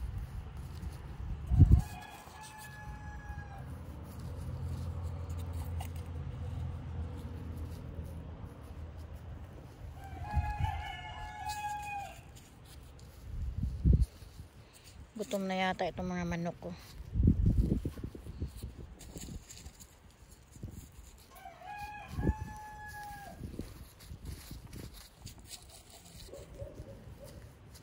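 Gloved fingers press and rustle in loose soil close by.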